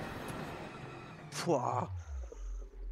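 A man speaks close to a microphone, with animation.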